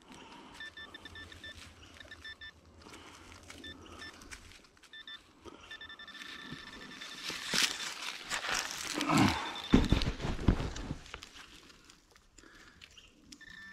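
Gloved hands scrape and crumble dry soil.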